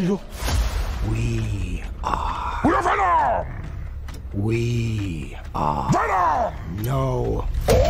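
A man speaks in a deep, low, growling voice.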